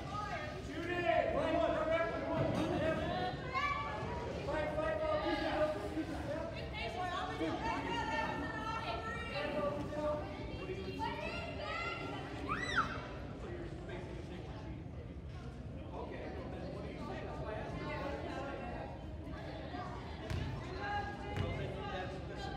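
Wheelchair wheels squeak on a hard court.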